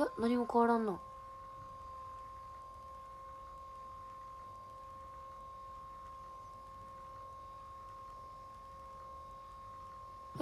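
A massager hums steadily.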